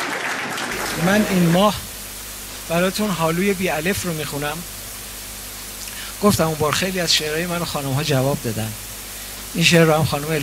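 A middle-aged man speaks with expression into a microphone, heard through loudspeakers.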